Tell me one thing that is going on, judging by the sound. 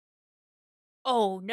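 A young woman cries out in surprise.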